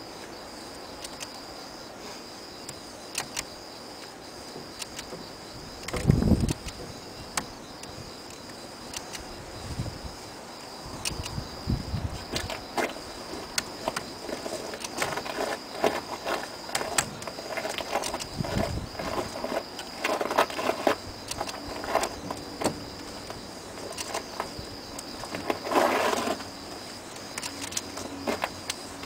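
Small metal parts click and tap close by.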